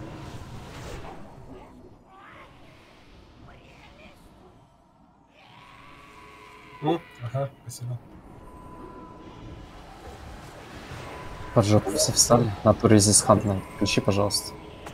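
Spells crackle and weapons clash in a fantasy battle.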